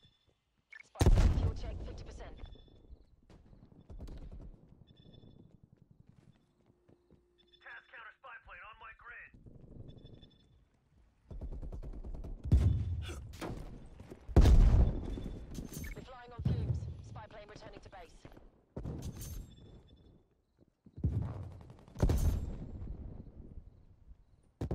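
Automatic gunfire rattles in loud bursts.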